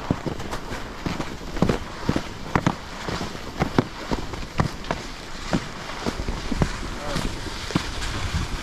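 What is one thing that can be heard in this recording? Ski poles knock against the snow.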